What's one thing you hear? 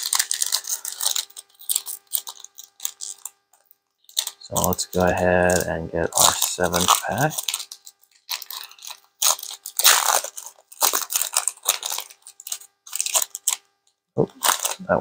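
A foil wrapper crinkles and tears as hands tear it open.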